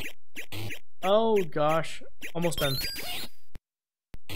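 A short retro game tune warbles up and down.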